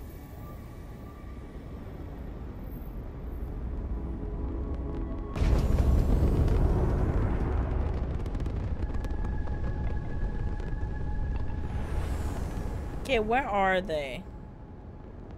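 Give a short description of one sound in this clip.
Spaceship engines roar with a deep rumble that swells suddenly and slowly fades.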